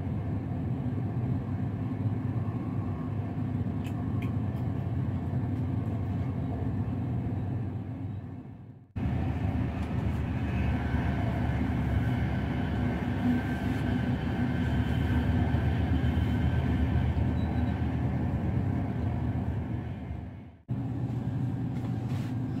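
A train rumbles and rattles steadily along the tracks, heard from inside a carriage.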